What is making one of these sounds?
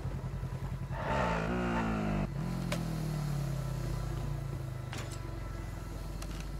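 A quad bike engine revs and drives off.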